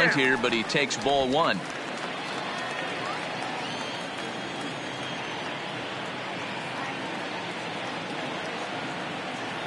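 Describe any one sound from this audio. A large crowd murmurs steadily in an open stadium.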